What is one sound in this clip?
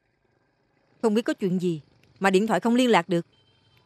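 A woman speaks up sharply and with agitation, close by.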